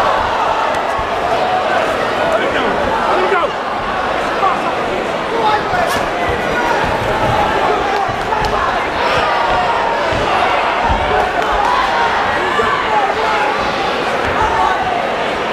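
A crowd of spectators shouts and cheers loudly throughout.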